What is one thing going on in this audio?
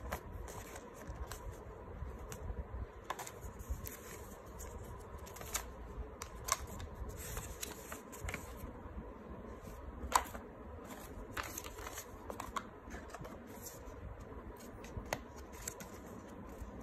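Paper rustles and crinkles close by as leaflets are handled.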